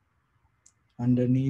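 A man begins to chant in a deep, steady voice close to a microphone.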